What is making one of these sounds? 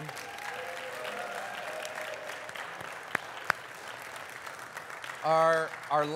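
A crowd applauds in a room with some echo.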